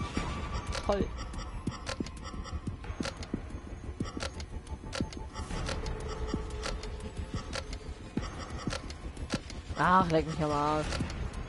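Metal buttons click sharply as they are pressed, one after another.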